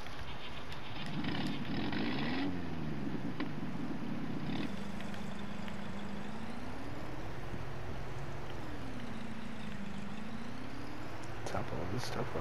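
A pickup truck engine hums and revs up and down.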